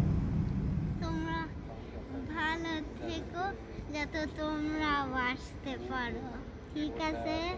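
A young girl speaks up close with animation.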